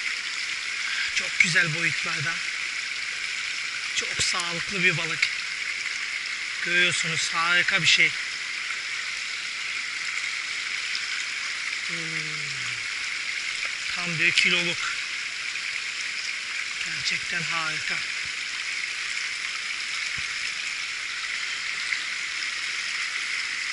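Shallow water ripples and flows steadily over stones close by.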